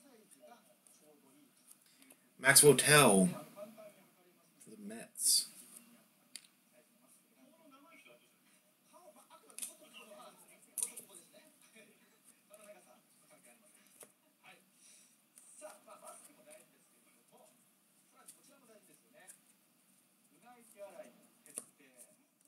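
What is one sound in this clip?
Trading cards rustle and flick softly as hands flip through a stack.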